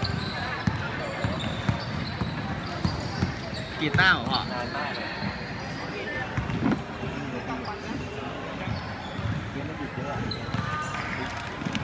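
Young people chatter and call out nearby.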